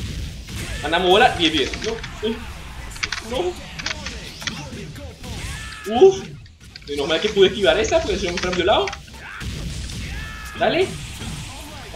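Sharp hits and blasts of fighting sound out in quick bursts.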